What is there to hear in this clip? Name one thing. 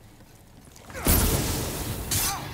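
Fire bursts with a loud roaring whoosh.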